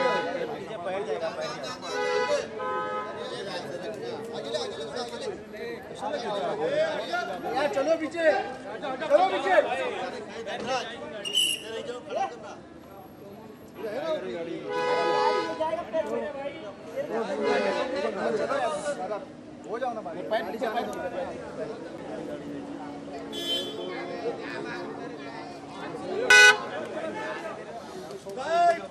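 A crowd of men and women chatters and calls out nearby.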